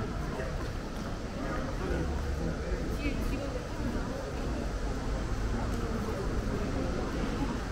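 People chat quietly nearby.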